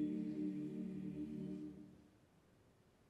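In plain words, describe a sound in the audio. A choir sings a sustained chord in an echoing hall and fades out.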